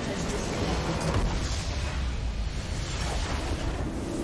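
A triumphant victory fanfare sounds.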